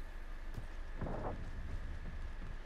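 A heavy metal door slides open with a whoosh.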